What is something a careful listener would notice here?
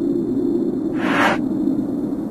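A short soft whoosh sounds once.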